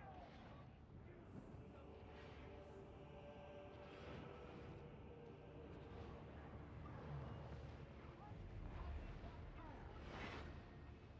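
A deep rumble of combat effects runs throughout.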